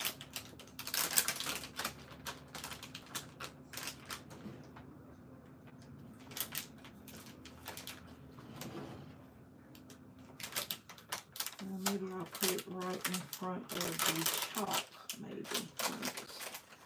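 Plastic wrapping crinkles as items are packed into a basket.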